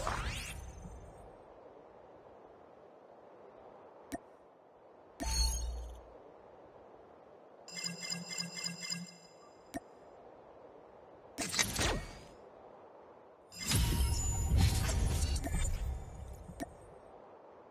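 Short electronic menu chimes and whooshes play in bursts.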